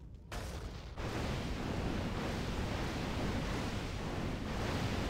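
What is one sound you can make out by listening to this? Magic blasts crackle and hiss as towers fire.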